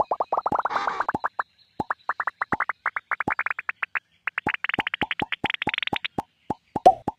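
Quick electronic game blips repeat, climbing steadily higher in pitch.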